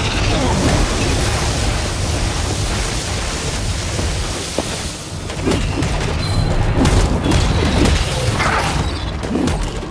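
Magic blasts roar and crackle in a fight.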